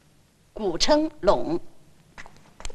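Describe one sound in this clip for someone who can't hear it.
A young woman speaks clearly.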